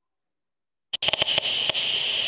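A handheld detector gives off a steady, high-pitched whine.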